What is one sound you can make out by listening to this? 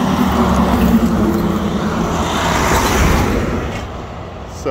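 Truck tyres hum on the pavement as they roll past.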